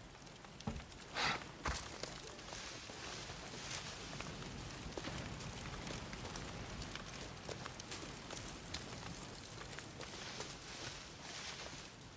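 Tall grass and bushes rustle against a moving body.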